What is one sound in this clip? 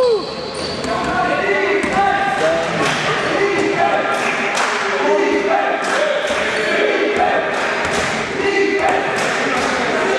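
Young men and spectators shout and call out across an echoing hall.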